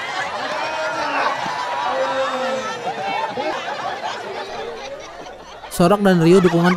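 A crowd cheers and chatters outdoors.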